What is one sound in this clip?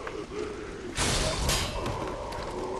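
A magical blast bursts with a crackling whoosh.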